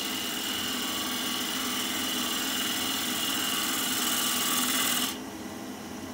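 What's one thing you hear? A chisel scrapes against spinning wood with a harsh hiss.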